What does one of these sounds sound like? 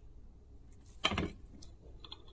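A knife crunches through a pastry's crisp shell.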